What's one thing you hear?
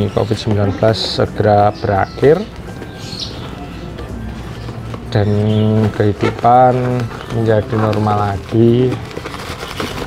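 Cardboard packaging rips and tears.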